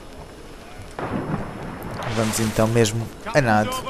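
Water splashes with swimming strokes.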